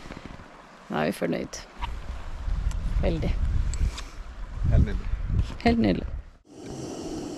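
A woman talks with animation close to the microphone.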